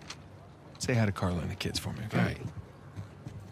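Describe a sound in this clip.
A man speaks warmly and casually up close.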